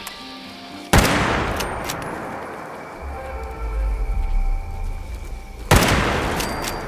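A gun fires loud shots that echo away.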